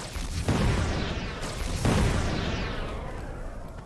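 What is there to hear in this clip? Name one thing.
Footsteps rustle through dense undergrowth.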